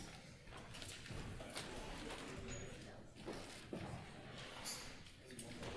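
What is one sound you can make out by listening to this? Young people murmur and talk quietly on a stage.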